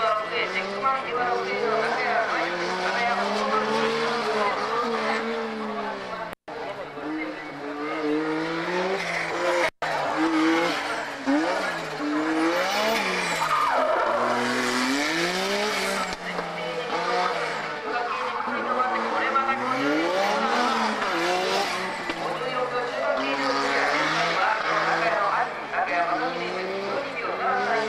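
A racing car engine revs hard, rising and falling in pitch as it shifts gears through corners.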